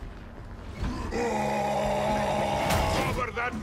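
A monster growls up close.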